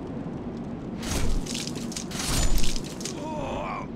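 A sword strikes with heavy thuds.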